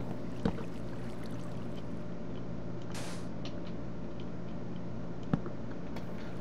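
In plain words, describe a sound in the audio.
A block thuds softly as it is set down.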